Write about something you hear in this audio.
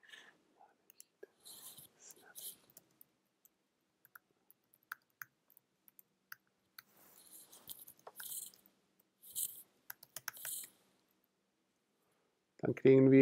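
Keys clack on a keyboard in quick, uneven bursts.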